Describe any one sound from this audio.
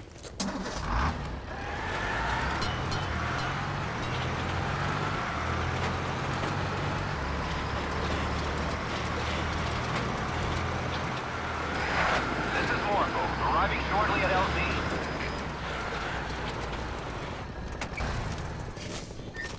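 A heavy truck engine rumbles steadily as the truck drives along.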